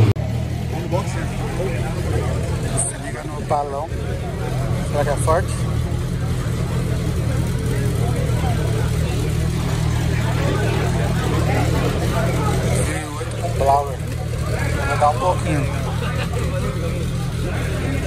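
A crowd of men and women chatters in the background outdoors.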